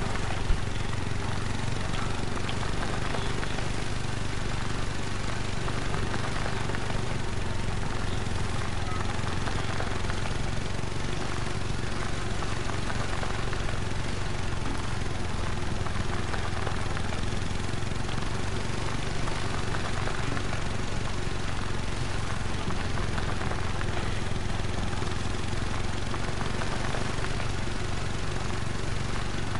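A quad bike engine drones steadily.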